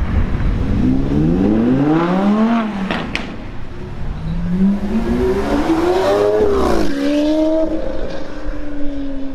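A sports car engine revs loudly, rising and falling in pitch.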